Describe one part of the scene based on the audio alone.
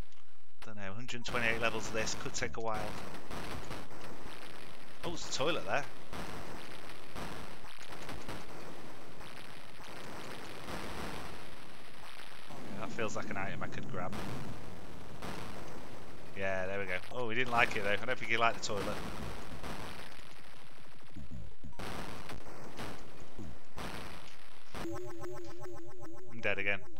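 Video game sound effects of a monster smashing a building play in bursts.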